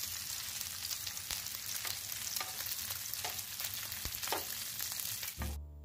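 Tongs scrape and clack against a grill pan.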